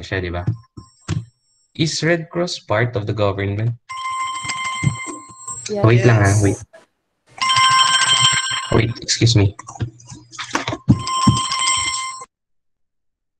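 A young man talks with animation through a headset microphone over an online call.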